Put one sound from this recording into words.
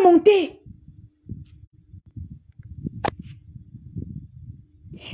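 A woman talks with animation.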